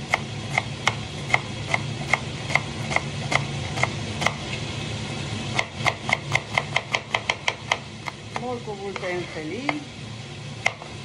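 A knife chops on a cutting board with quick, regular knocks.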